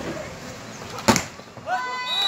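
A ball is struck hard with a sharp slap.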